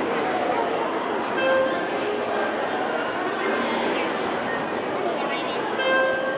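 A small string ensemble plays a piece together in an echoing hall.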